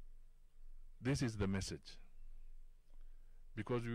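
A middle-aged man speaks into a microphone, with long pauses.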